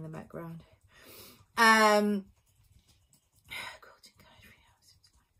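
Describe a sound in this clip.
A woman speaks softly and hesitantly, close to a microphone.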